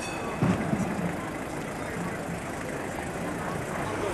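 A van engine idles and drives past.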